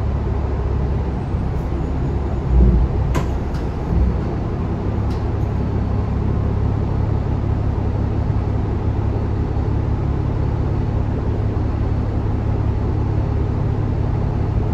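A bus engine idles with a low steady rumble inside the cabin.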